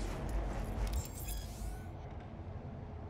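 An electronic chime sounds as a menu opens.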